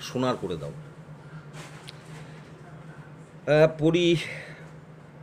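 An older man speaks calmly and close by, in short bursts with pauses.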